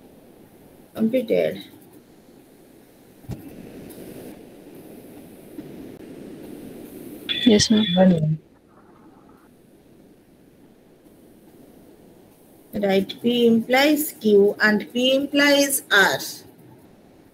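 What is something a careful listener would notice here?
A woman speaks through an online call in short bursts.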